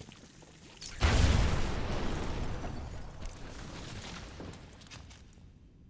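A loud explosion booms and then rumbles away.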